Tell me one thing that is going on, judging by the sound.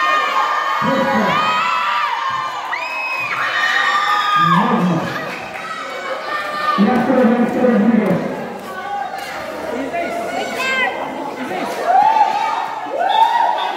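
Young people shout and call out nearby.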